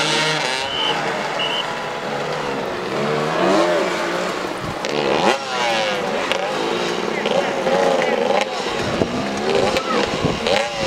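Several motorcycle engines roar and rev loudly, rising and falling in pitch.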